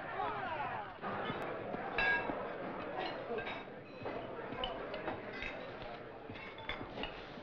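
A crowd of men chatters in a large room.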